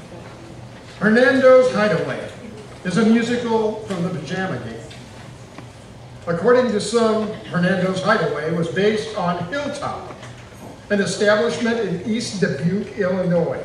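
An elderly man speaks calmly into a microphone over loudspeakers in a large hall.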